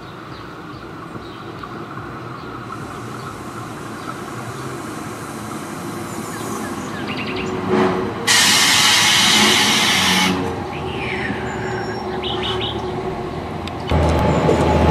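A train rumbles as it approaches and slows.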